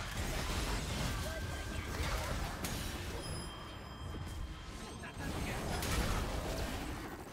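Game battle effects whoosh, zap and clash.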